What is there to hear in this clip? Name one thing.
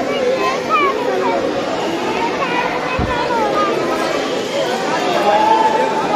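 A crowd of men and women chatter loudly nearby, echoing in a large hall.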